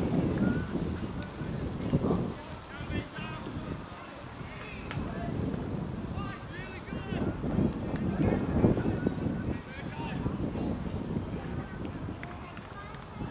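Wind blows and buffets outdoors.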